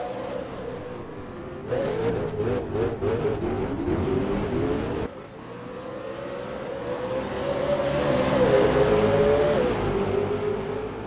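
A V8 race car engine revs hard and shifts up through the gears.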